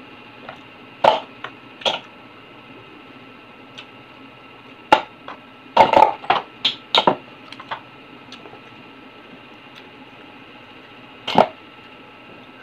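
Oyster shells clack and scrape against each other.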